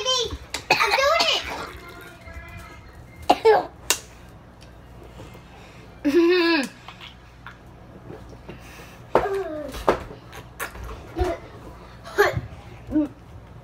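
A young woman gulps a drink from a bottle.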